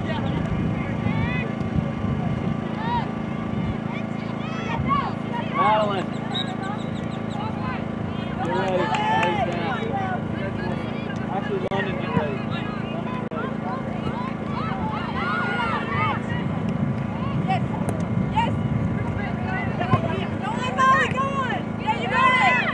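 Young women and spectators shout and call out across an open field outdoors.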